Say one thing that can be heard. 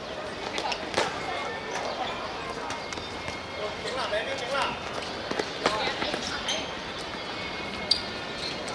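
A ball is kicked with sharp thuds on a hard court.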